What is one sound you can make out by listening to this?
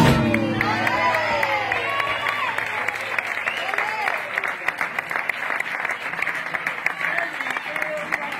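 A dancer's heels stamp sharply on a wooden stage.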